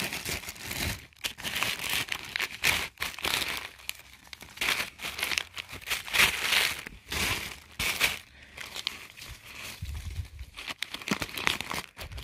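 Tissue paper and plastic packaging rustle and crinkle close by.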